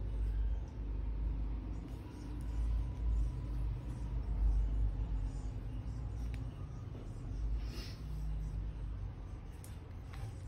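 Hands turn over a rubber and metal part with light rubbing and soft knocks.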